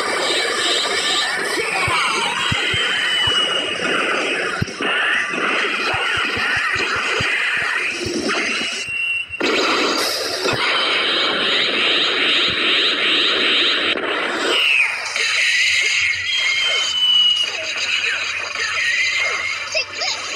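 Game fighting sounds of blasts and hits ring out throughout.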